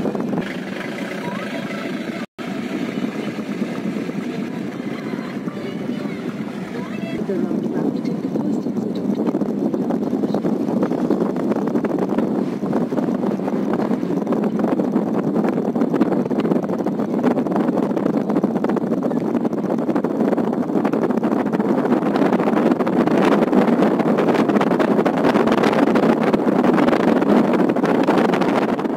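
Tyres roar on the road, growing louder as the car speeds up.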